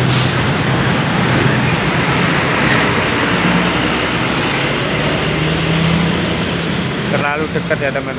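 A bus engine rumbles loudly as the bus passes close by.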